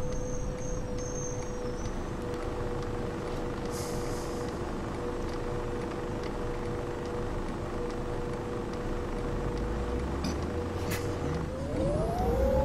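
A bus engine idles with a steady hum.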